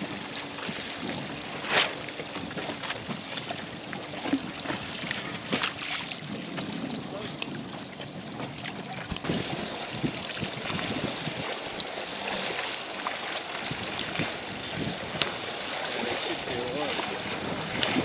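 Small waves lap and splash against a boat.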